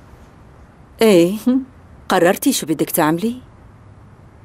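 A young woman speaks close by with agitation.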